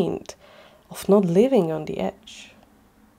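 A man speaks softly and close by, with a questioning tone.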